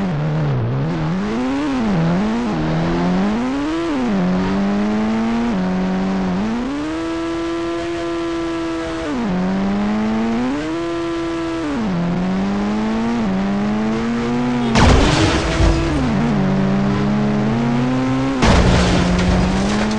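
A game engine revs up and down throughout.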